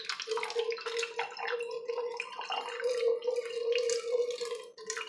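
Water trickles in a thin stream into a metal can.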